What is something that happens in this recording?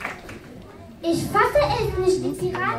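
Young performers speak loudly on stage in a large hall.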